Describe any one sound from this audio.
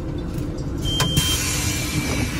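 Bus doors clunk open.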